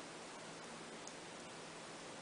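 A finger clicks a button on a handheld game console.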